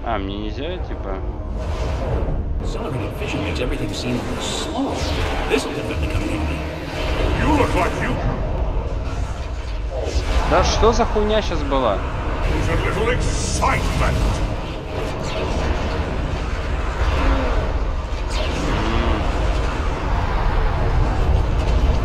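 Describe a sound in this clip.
Deep rumbling blasts and crashes roar without a break.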